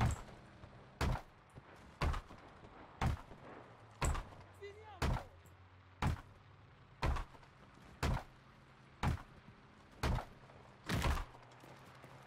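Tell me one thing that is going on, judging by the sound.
A hammer knocks steadily, about once a second.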